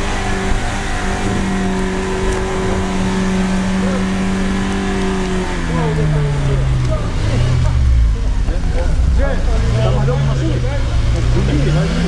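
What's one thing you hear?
Tyres churn and squelch through deep mud.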